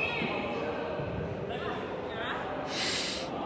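Sneakers squeak sharply on an indoor court.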